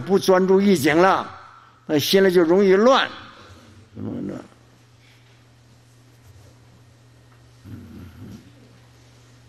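An elderly man speaks slowly and deliberately into a microphone, in short phrases with pauses.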